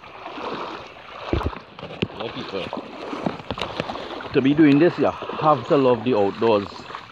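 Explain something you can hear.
A stream of water flows gently.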